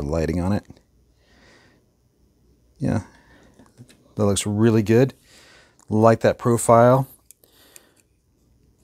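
Plastic parts click softly as a toy figure is handled.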